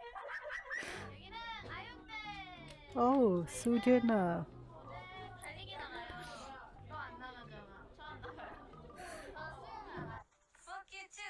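Young women talk and laugh.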